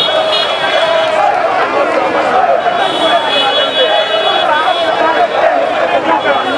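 A large outdoor crowd chants and cheers loudly.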